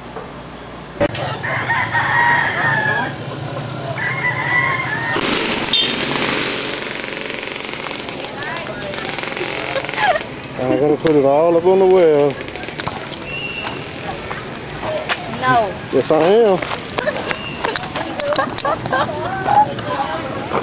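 A young woman talks loudly and playfully close by.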